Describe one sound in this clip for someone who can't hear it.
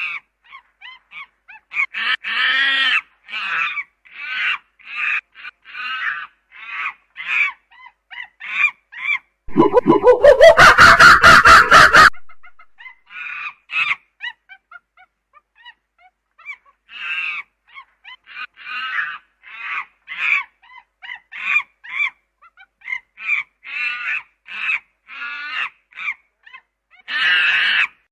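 A chimpanzee screams and hoots loudly in rapid bursts.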